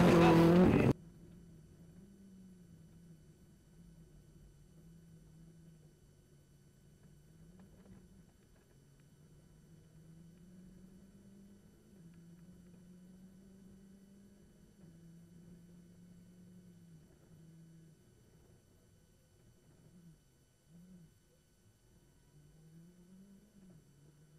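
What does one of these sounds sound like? A rally car engine revs up and down, heard from inside the car.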